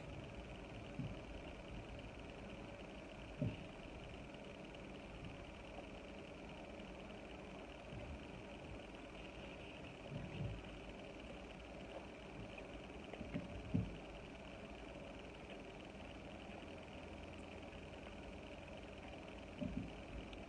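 Fingers handle food on a plate with soft bumps close by.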